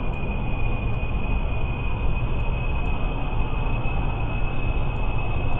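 Propeller engines roar steadily as an aircraft speeds along a runway.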